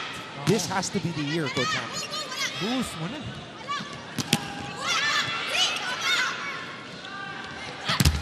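A volleyball is struck with loud smacks.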